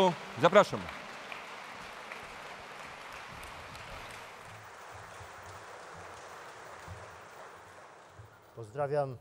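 A crowd applauds in a large hall.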